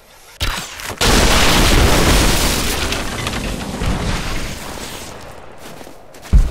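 A fire roars loudly.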